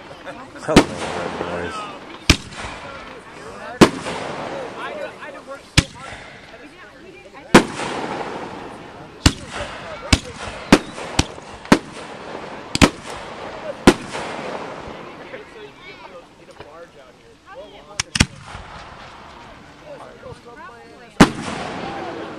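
Aerial fireworks burst with sharp booming bangs that echo outdoors.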